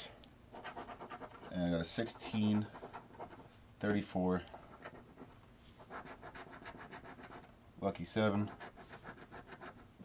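A coin scratches rapidly across a scratch card.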